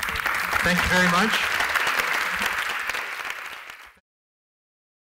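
An audience applauds, then the applause fades out.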